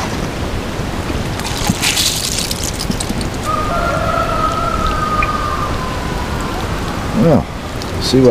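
Water from a watering can splashes and patters onto soil.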